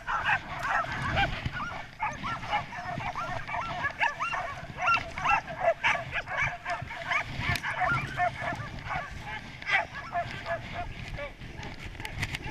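Sled dogs yelp and bark excitedly.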